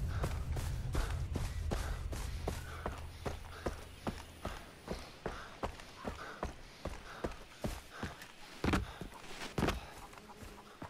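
Footsteps crunch steadily on a dirt path.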